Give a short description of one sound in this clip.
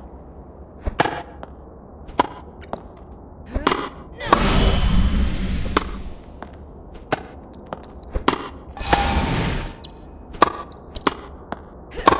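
Tennis balls are struck with sharp pops.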